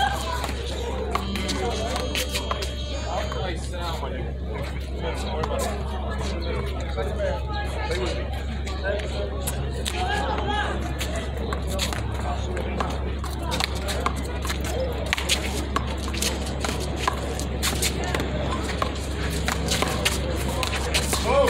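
Sneakers squeak and scuff on concrete.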